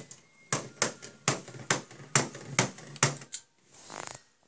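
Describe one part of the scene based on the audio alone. A computer mouse clicks rapidly.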